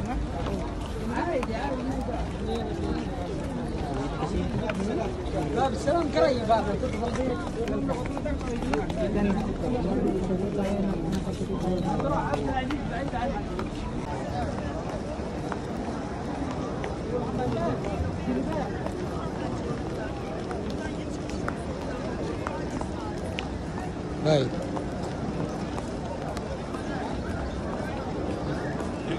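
A large crowd murmurs and talks outdoors.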